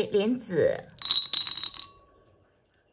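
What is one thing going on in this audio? Small hard seeds clatter into a ceramic bowl.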